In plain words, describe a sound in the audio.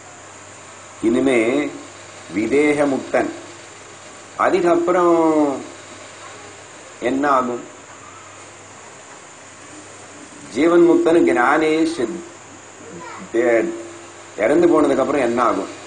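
An elderly man speaks calmly into a close microphone, with pauses between phrases.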